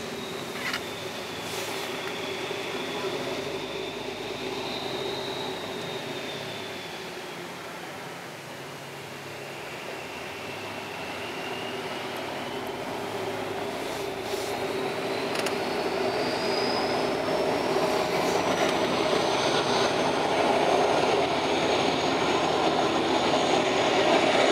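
A large ship's engines hum steadily in the distance, slowly growing louder.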